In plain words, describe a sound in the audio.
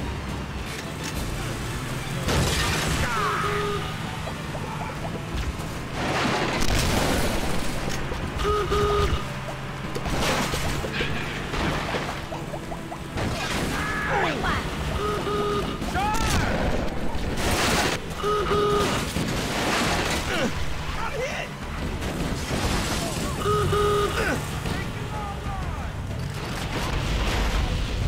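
Plasma weapons fire in sharp bursts.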